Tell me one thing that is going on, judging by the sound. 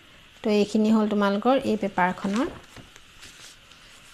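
Sheets of paper rustle as they are moved.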